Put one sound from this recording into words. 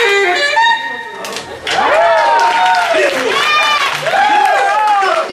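A live band plays music.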